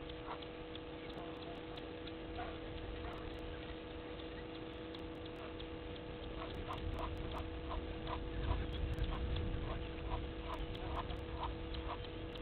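Geese give short, soft honking calls nearby.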